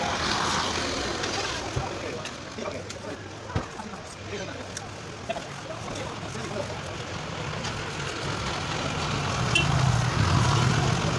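A trowel scrapes and taps on wet cement.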